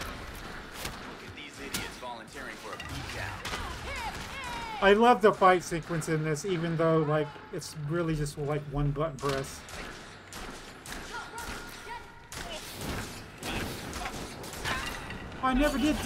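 Fists thud in a brawl.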